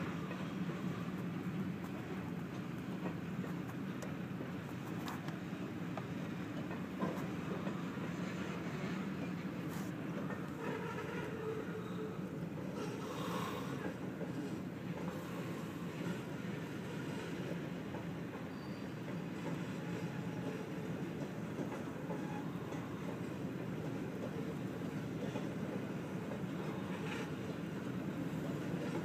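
A freight train rumbles and clatters steadily past, heard from inside a car.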